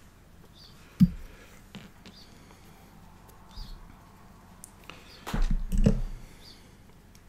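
Hands handle a small clamp with soft knocks and rustles.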